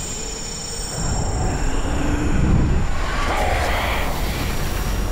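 A creature snarls and roars as it is grabbed.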